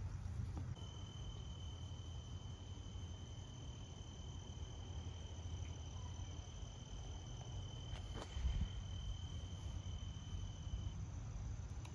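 A small dog's paws patter softly on grass.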